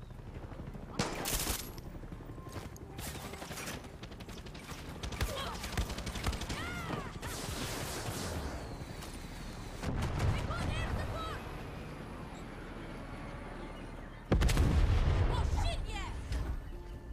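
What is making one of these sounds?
Gunshots crack and echo.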